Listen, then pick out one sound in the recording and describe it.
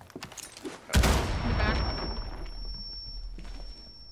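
Wooden boards splinter and crash apart.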